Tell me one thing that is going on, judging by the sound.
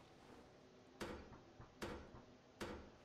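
Hammer blows knock on wooden boards, echoing briefly.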